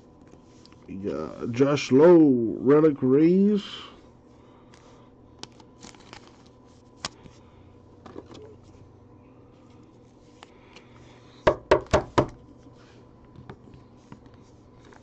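Trading cards slide and tap against each other.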